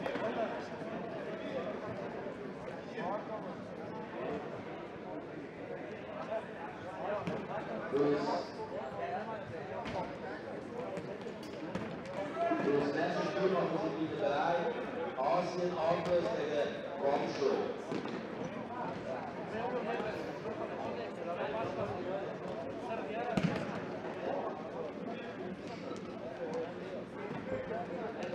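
Men shout to each other in a large echoing sports hall.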